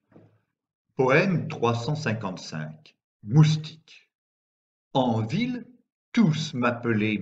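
An older man reads aloud calmly into a microphone.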